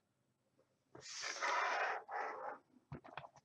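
Plastic bottle caps slide and scrape across a wooden table.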